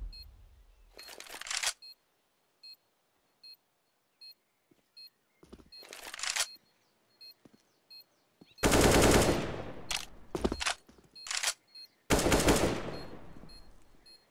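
Rifle shots fire in loud bursts.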